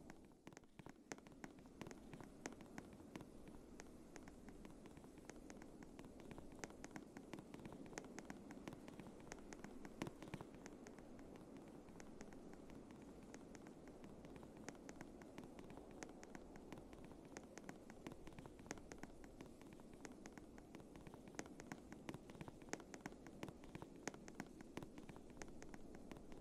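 Wind blows with a low, steady rush.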